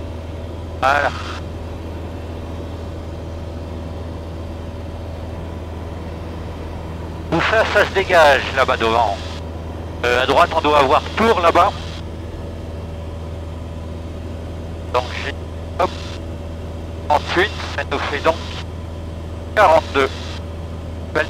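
A man speaks in short bursts over a headset intercom.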